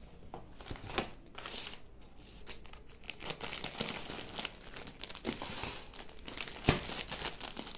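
A cardboard box knocks and scrapes as it is moved.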